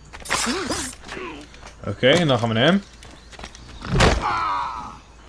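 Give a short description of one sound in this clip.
A heavy blow lands with a sharp thud.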